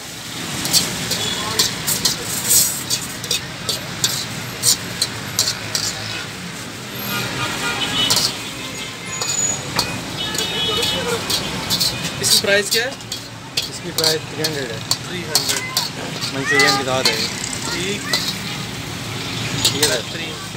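Rice sizzles in a hot wok.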